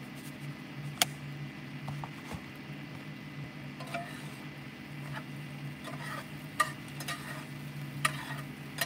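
A spatula scrapes and clinks against a pan.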